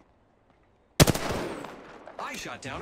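A rifle fires a short, loud burst of shots.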